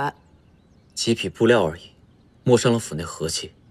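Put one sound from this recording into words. A young man speaks close by calmly.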